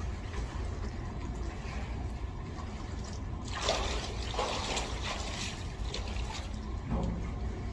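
Water splashes and sloshes in an echoing room.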